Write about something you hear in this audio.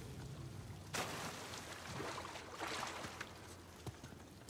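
Water splashes as a man drops in and wades.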